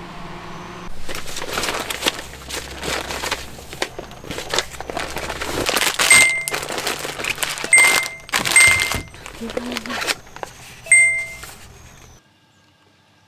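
Plastic packaging crinkles and rustles close by.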